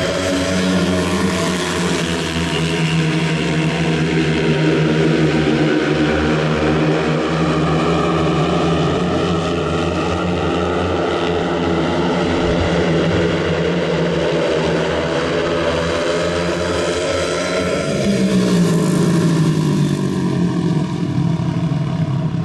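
Several motorcycle engines roar loudly as the bikes race around a track.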